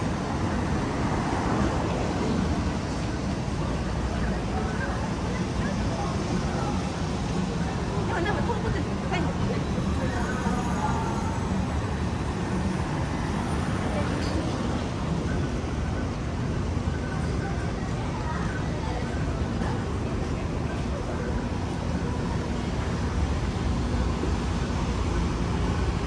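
Footsteps tap on paving stones nearby.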